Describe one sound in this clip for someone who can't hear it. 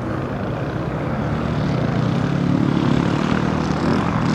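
Motorcycle engines drone in the distance and grow louder as they approach.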